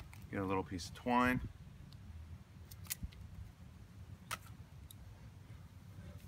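Pruning shears snip a thin branch.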